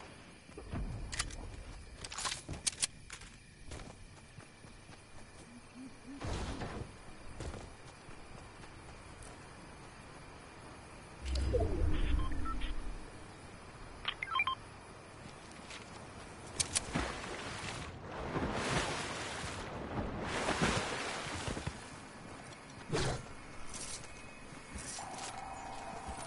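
Footsteps thud quickly on the ground.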